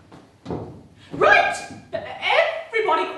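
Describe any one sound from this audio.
A young woman speaks loudly in an echoing hall.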